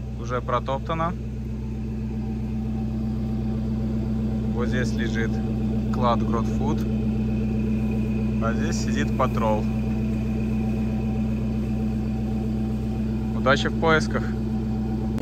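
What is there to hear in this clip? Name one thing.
An engine idles with a steady low hum nearby.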